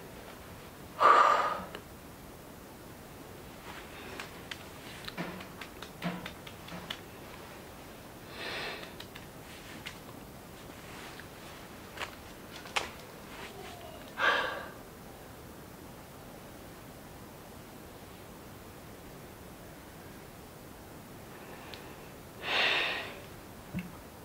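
A young woman breathes out heavily and sighs close by.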